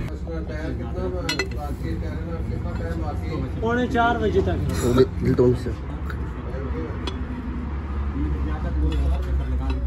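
A metal tool scrapes and clinks inside a metal housing.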